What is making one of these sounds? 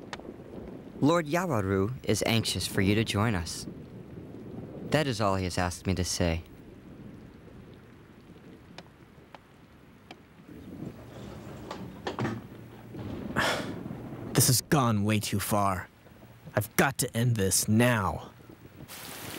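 A man speaks in a low, tense voice.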